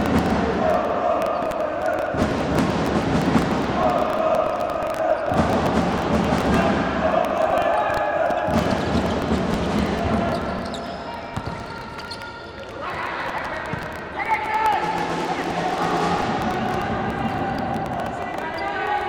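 A ball thuds as players kick it on a hard indoor court.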